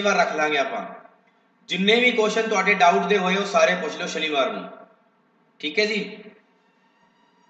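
A man speaks calmly into a close microphone, explaining.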